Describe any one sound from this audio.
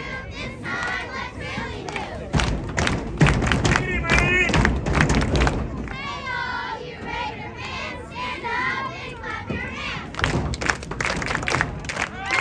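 Football players' pads collide with thuds.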